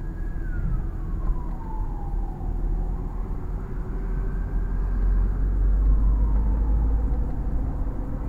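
Tyres roll slowly over pavement.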